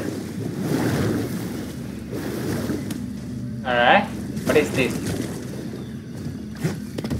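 Water splashes and sloshes as someone wades.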